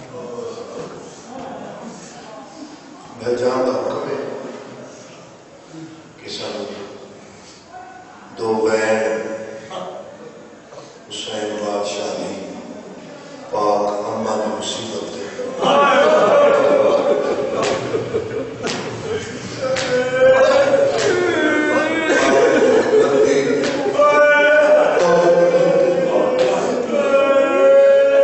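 A young man speaks with growing passion into a microphone, heard through a loudspeaker in an echoing space, his voice rising into a chanting wail.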